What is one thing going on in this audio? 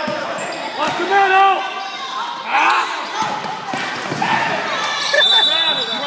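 A crowd of spectators talks and cheers in an echoing gym.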